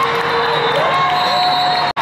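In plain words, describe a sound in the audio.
Young women on a team cheer and shout together.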